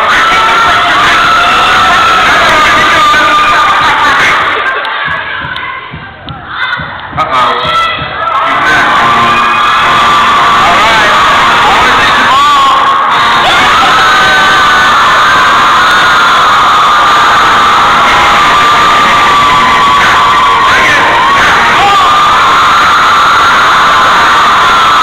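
Loud music with singing plays through loudspeakers in a large hall.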